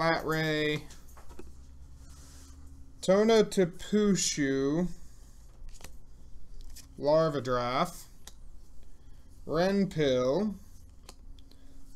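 Playing cards are slid and set down on a table.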